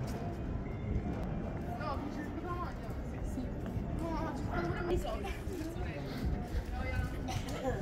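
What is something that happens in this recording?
People chatter nearby in an open outdoor space.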